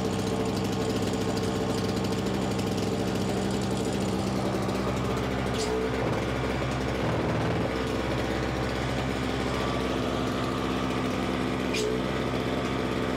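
The small gasoline engine of a single-stage snowblower idles.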